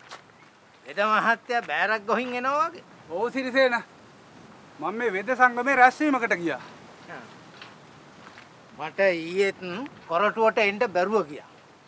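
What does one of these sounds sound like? An older man answers with animation.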